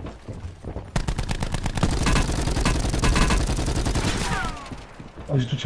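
A heavy machine gun fires a rapid, roaring burst.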